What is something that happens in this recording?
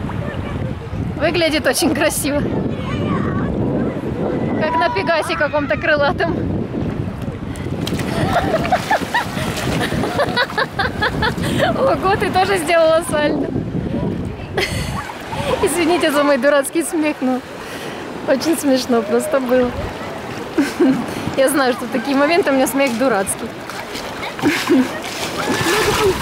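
A young woman talks and laughs close by, with animation.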